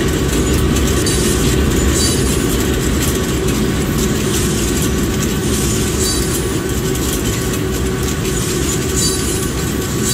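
Freight car wheels click and clatter over rail joints.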